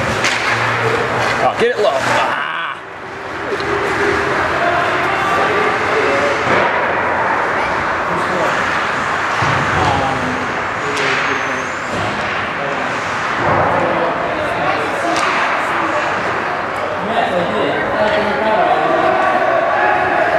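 Skates scrape and hiss across the ice in a large echoing rink.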